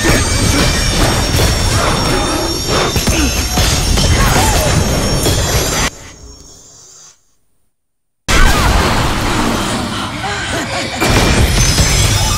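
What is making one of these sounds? Swords clash and magic blasts crackle in a fierce fight.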